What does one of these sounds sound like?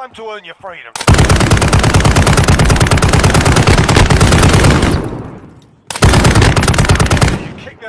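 Automatic gunfire rattles rapidly in fast bursts.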